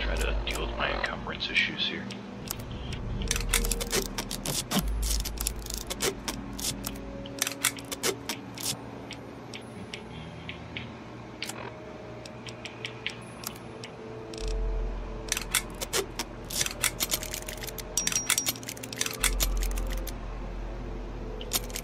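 Sharp electronic clicks sound as menu items are scrolled and selected.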